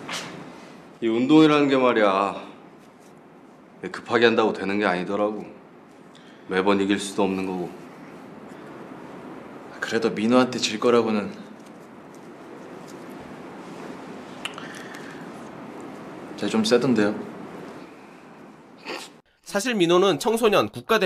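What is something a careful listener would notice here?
A man talks calmly and casually, close by.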